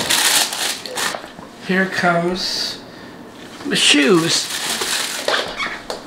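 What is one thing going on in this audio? Tissue paper rustles as a shoe is lifted from a box.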